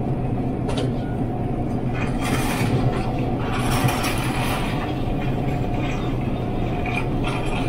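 A steady electrical hum fills the room.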